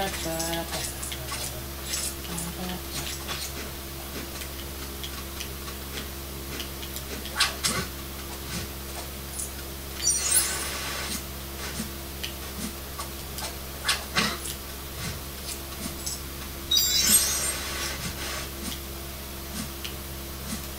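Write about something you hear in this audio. Video game sound effects and music play from a television's speakers, with clicks and bursts.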